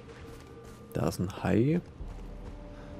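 A bowstring creaks as a bow is drawn back.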